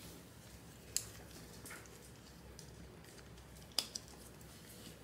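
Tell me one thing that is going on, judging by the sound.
A collar buckle clicks shut.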